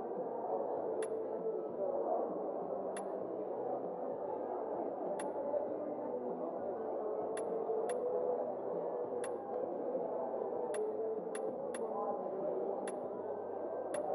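Soft menu clicks tick at irregular intervals.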